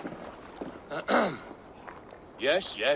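A man clears his throat.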